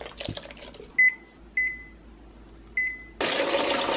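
A microwave oven beeps several times.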